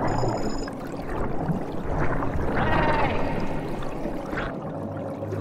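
Bubbles gurgle and rumble steadily underwater.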